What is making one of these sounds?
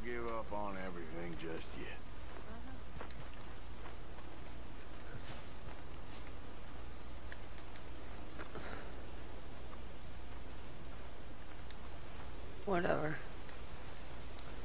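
Footsteps crunch on grass and dirt.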